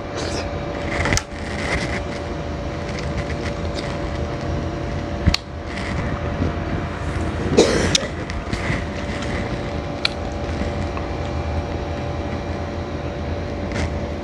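A man chews and slurps dragon fruit.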